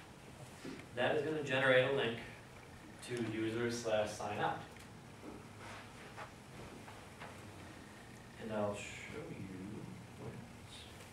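A man speaks calmly in a large room.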